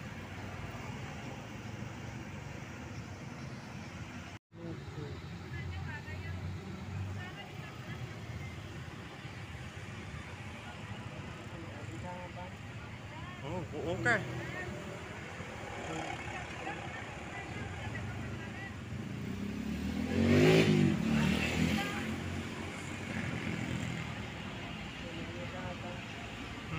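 A large coach bus drives past on a street.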